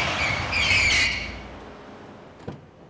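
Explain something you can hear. A car drives slowly and pulls up, its engine humming.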